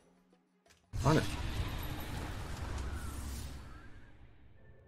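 A game chime and whoosh sound as a round is lost.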